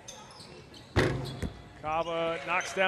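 A crowd cheers in an echoing hall.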